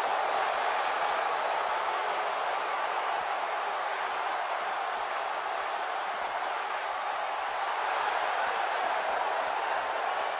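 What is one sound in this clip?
A large crowd cheers and roars steadily in a vast echoing arena.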